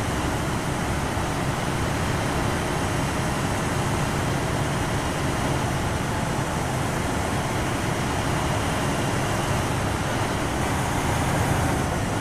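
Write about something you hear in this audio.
Heavy armoured vehicle engines rumble steadily as the vehicles roll along a road.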